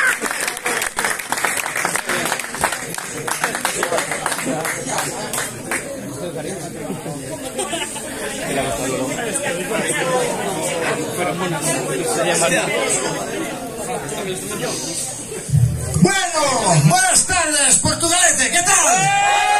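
A rock band plays loudly on stage in an echoing room.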